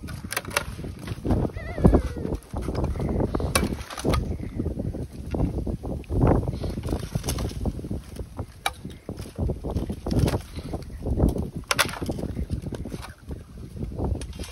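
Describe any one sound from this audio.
Thin ice cracks and crunches.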